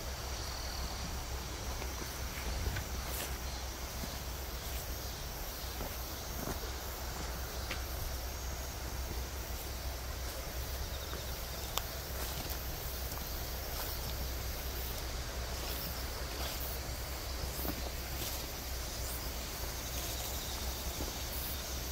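A walking stick taps on the ground.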